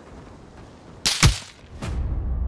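A gunshot bangs loudly nearby.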